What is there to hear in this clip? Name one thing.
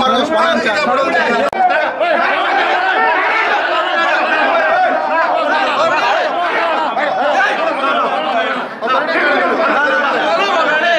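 A crowd of men talk and shout over one another close by.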